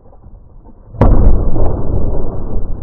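A boat drops into the water with a heavy splash.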